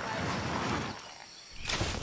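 Leaves rustle as someone pushes through a bush.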